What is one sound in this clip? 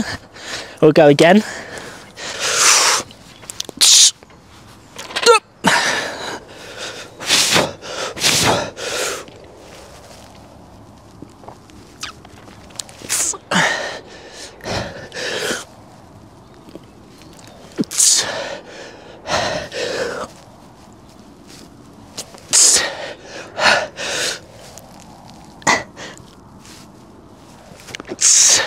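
A young man breathes out hard with effort, again and again.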